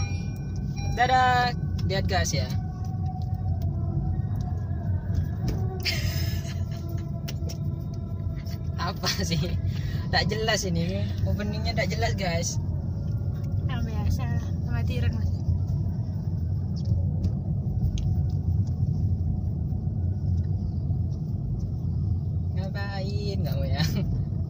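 A car engine hums low and road noise rumbles steadily.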